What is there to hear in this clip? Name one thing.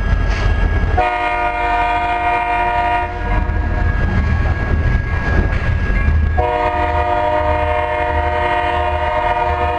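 Freight car wheels squeal on the rails.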